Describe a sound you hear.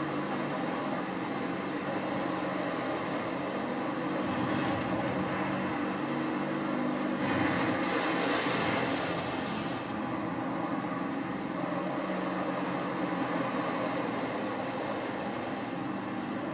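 Explosions boom from a loudspeaker.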